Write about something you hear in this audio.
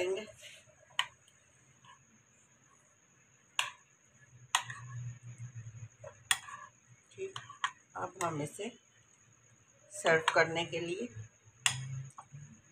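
A spoon clinks against a glass bowl.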